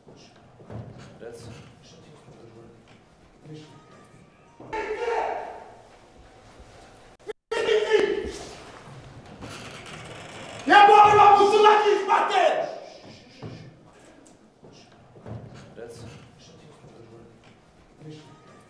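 Footsteps climb a staircase.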